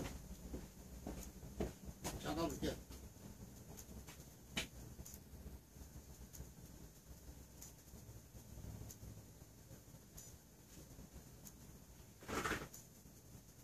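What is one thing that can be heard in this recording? Candle flames burn with soft, occasional crackles.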